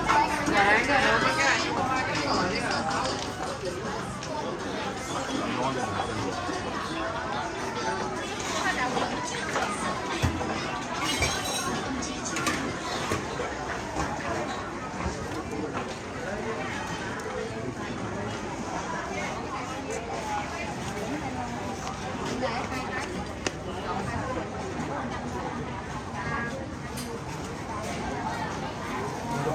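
A crowd of people chatters all around outdoors.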